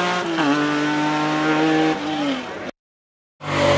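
A historic rally car engine revs as it climbs toward a bend.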